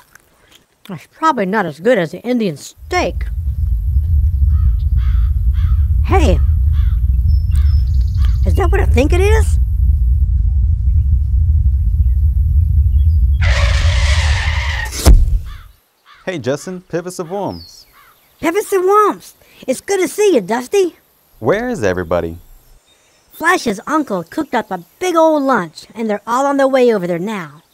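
A man speaks in a high, animated cartoon voice.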